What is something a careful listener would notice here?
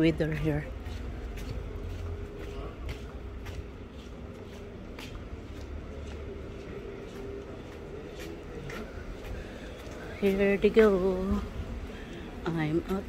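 Footsteps tap steadily on a paved walkway.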